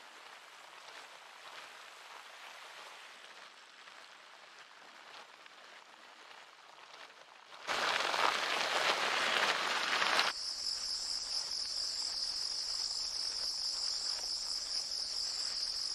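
A bicycle on an indoor trainer whirs steadily.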